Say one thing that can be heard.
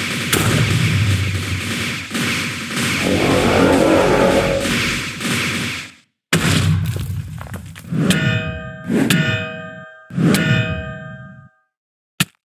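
Game combat effects crash and thud repeatedly.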